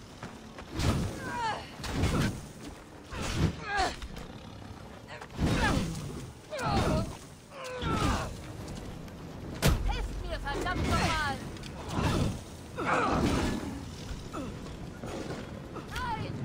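Flames roar and crackle.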